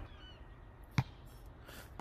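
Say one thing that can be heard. A football is struck with a sharp thump.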